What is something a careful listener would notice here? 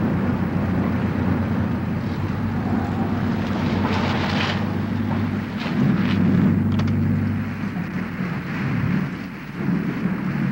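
A car engine hums as the car rolls slowly forward.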